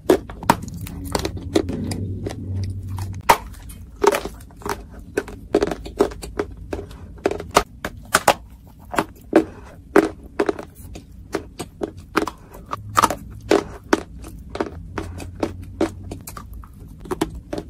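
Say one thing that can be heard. A young woman bites into crumbly clay with loud crunching close to a microphone.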